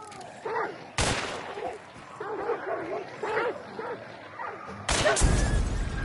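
Pistols fire loud shots.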